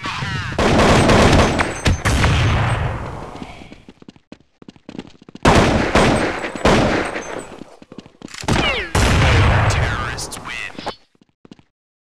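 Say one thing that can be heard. A grenade explodes with a loud, rumbling blast.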